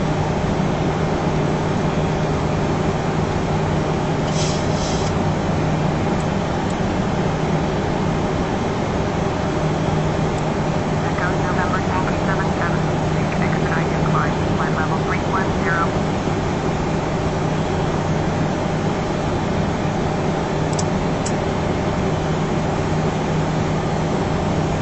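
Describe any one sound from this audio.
Jet engines hum in a steady low drone inside a cockpit.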